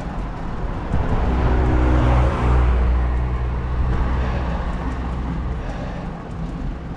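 A car approaches and drives past close by.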